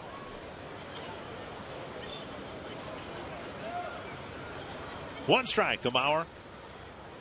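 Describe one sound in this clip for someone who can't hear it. A crowd murmurs in the stands.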